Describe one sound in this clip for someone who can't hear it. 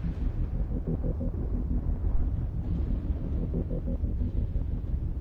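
Music with a deep, pounding bass plays steadily.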